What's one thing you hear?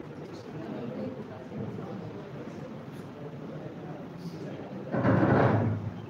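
A large seated crowd murmurs quietly in an echoing hall.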